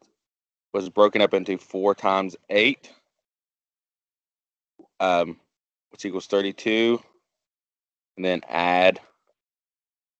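A woman speaks calmly and clearly through a microphone, pausing between phrases.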